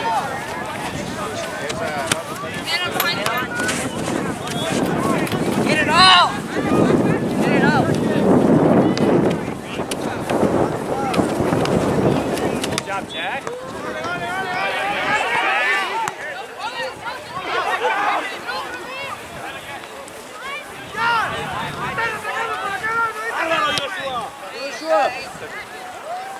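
Young players shout and call out to each other outdoors.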